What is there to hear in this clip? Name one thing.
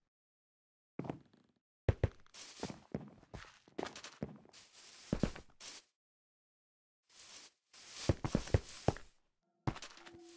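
A sword strikes a player with dull thuds.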